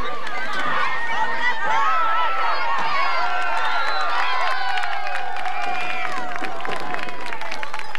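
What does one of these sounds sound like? A crowd of young players and spectators shouts and cheers outdoors.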